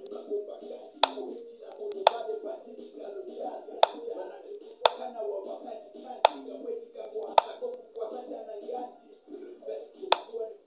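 Sharp digital clicks sound as chess pieces are moved.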